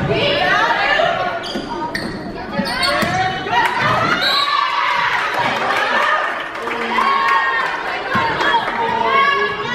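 Sneakers squeak on a wooden court floor.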